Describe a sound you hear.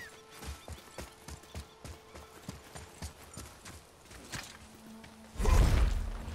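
Heavy footsteps thud quickly on rocky ground.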